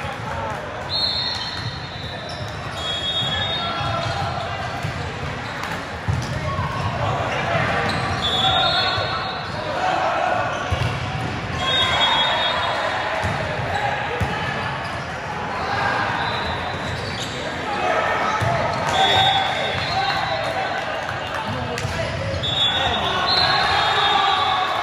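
A referee's whistle blows in short, shrill blasts.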